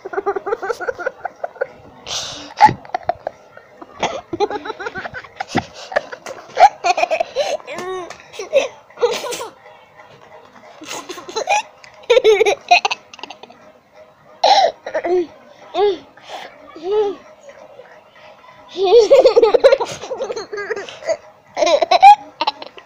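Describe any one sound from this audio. A young child talks playfully and giggles up close.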